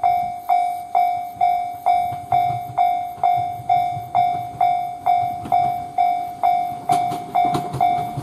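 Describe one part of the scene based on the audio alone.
A train rumbles closer along the tracks.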